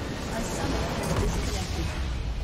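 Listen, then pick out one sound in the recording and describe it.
A structure explodes with a deep boom in a video game.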